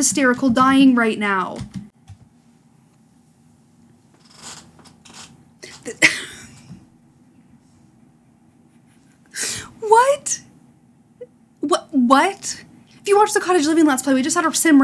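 A young woman talks excitedly, close to a microphone.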